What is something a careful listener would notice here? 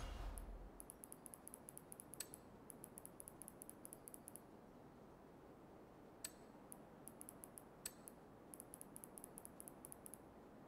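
Soft game menu ticks click rapidly as a slider moves.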